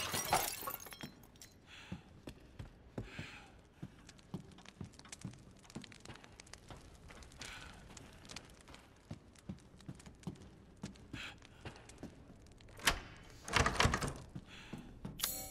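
Footsteps tap across a hard floor indoors.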